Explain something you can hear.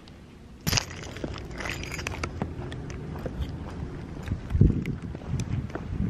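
Footsteps fall on pavement outdoors.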